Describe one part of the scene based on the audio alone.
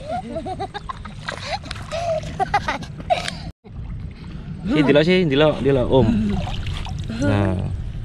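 Water splashes as children move about.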